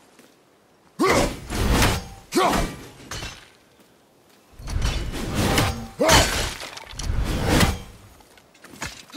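A heavy axe swings and thuds into wood.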